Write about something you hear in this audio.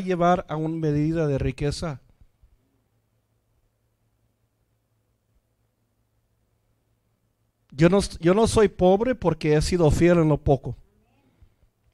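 A middle-aged man speaks with animation into a microphone, pausing between phrases.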